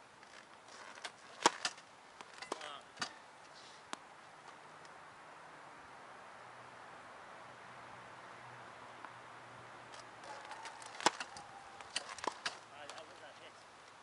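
Tennis balls are struck with rackets with sharp pops outdoors.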